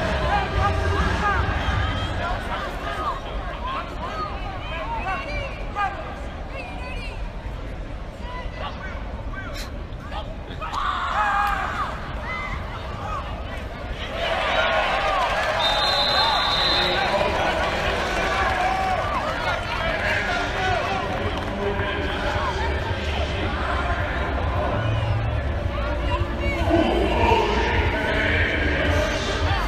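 A large crowd in a stadium cheers and chatters loudly outdoors.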